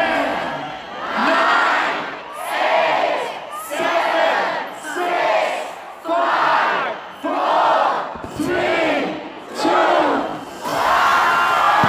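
A crowd chants together in loud, regular bursts.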